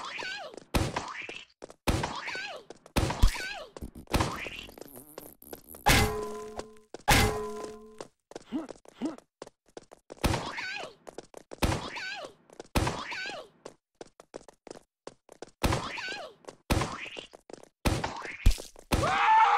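A rocket launcher fires again and again with sharp blasts.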